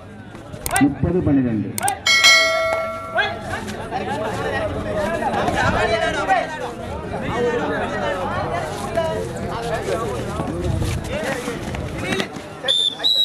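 A crowd cheers and shouts close by.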